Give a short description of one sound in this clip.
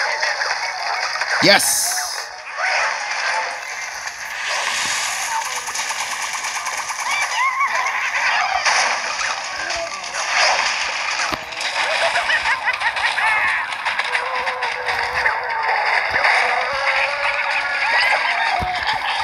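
Cartoon game sound effects pop, splat and chime continuously.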